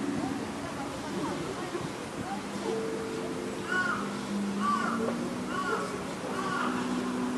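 An electric guitar plays slow, sustained notes through a small amplifier outdoors.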